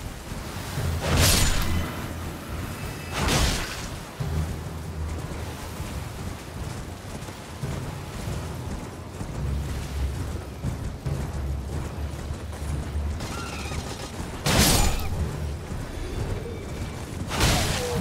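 A sword swings through the air with sharp whooshes.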